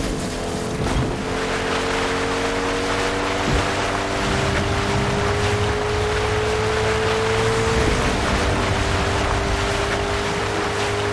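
Water splashes and hisses under a moving car.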